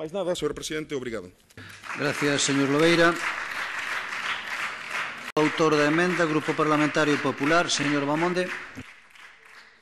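A man speaks firmly into a microphone, his voice echoing in a large hall.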